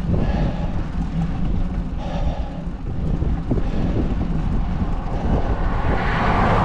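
Wind buffets and roars outdoors throughout.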